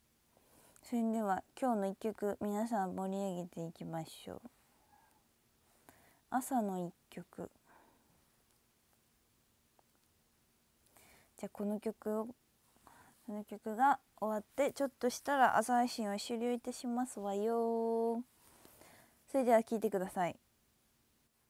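A young woman talks calmly and close to a microphone, in short bursts with pauses.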